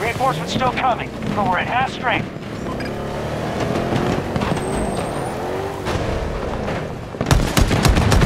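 A vehicle engine rumbles.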